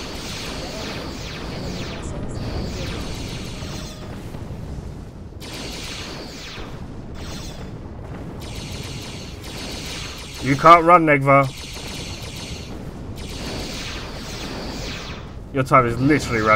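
Explosions boom and crackle in a space battle.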